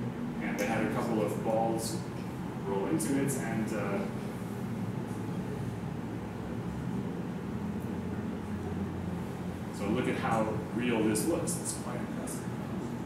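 A young man speaks calmly through a microphone in an echoing room.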